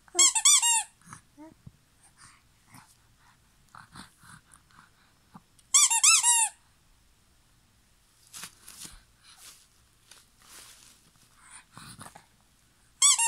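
A baby coos and babbles softly up close.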